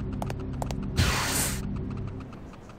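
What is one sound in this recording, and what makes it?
A heavy metal door slides open with a rushing hiss.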